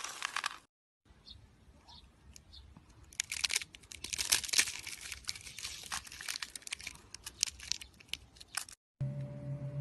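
Brittle pieces crackle and crumble in a hand.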